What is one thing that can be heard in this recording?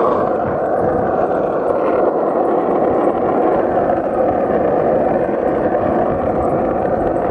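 Wind rushes steadily and loudly past the microphone outdoors.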